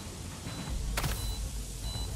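A line snaps taut with a sharp swish.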